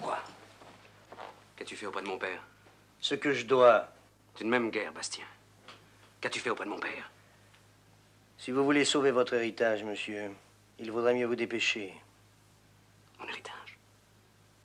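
An older man answers calmly.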